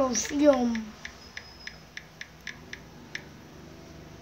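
A phone keyboard clicks with quick, light taps.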